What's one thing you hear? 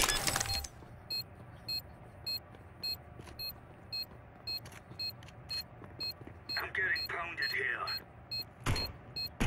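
A game bomb beeps in short, regular high blips while being defused.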